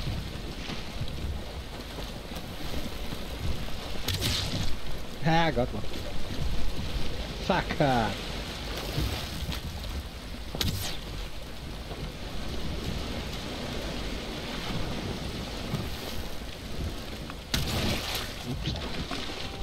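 Water rushes and splashes against a sailing boat's hull.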